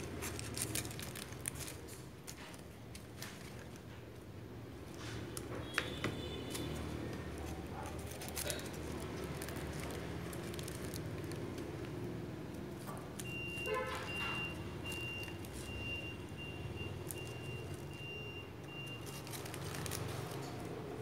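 Crepe-paper leaves rustle and crinkle as hands fit them around a foam fruit net.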